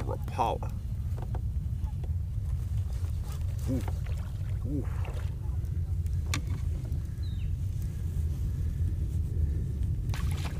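A fishing reel clicks as a man winds it.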